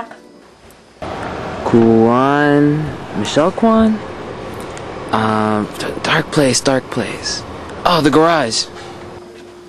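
A young man talks with animation up close, his voice rising and falling.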